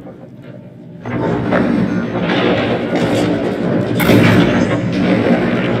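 A heavy machine grinds and rumbles as it turns.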